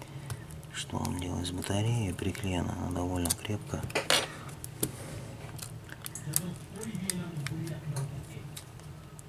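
A thin metal tool clicks against a plastic frame.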